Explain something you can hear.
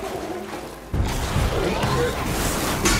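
Flames burst and roar.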